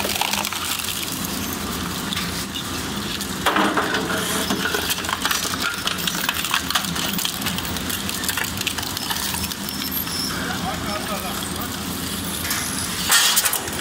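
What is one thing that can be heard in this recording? A shredder's rotating blades grind and rumble steadily.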